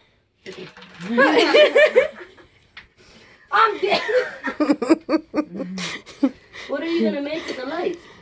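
A young woman talks loudly and laughs close by.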